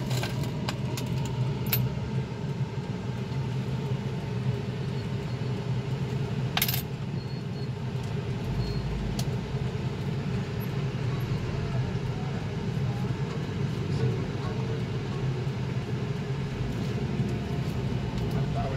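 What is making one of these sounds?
A car engine idles with a low steady hum, heard from inside the car.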